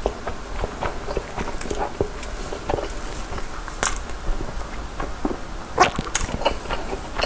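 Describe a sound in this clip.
A young man talks close to a microphone, animated.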